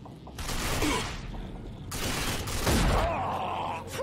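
A pistol fires a loud shot.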